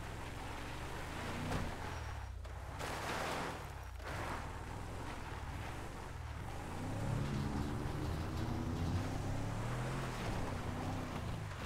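Tyres crunch over a rough dirt track.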